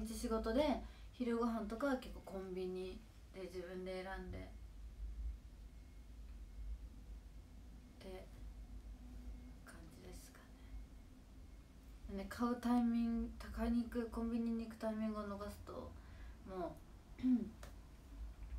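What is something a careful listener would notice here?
A young woman speaks softly and close to a microphone, in short bursts.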